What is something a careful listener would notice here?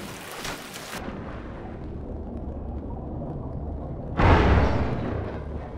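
Deep muffled underwater rumbling drones on.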